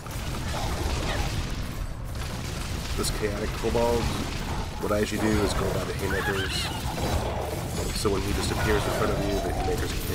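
Magic blasts and impacts burst repeatedly.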